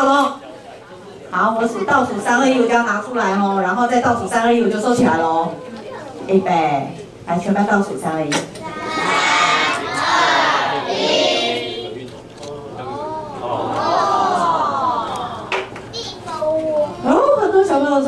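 A middle-aged woman speaks calmly and with animation through a close microphone.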